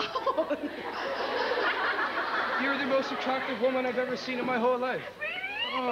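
A studio audience laughs.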